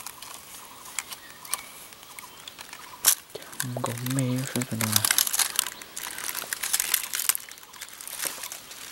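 Dry leaves rustle and crackle as a hand moves through them.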